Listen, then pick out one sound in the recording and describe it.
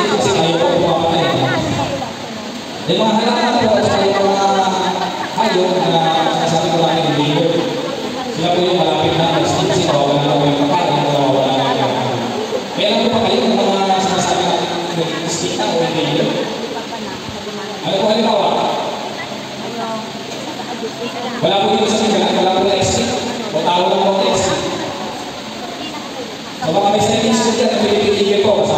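A man speaks steadily through loudspeakers in a large echoing hall.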